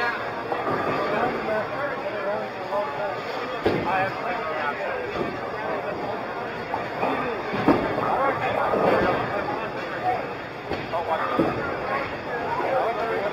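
A crowd of people chatter in a busy, echoing room.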